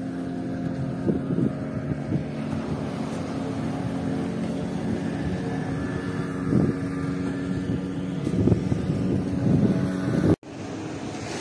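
A boat engine hums steadily nearby.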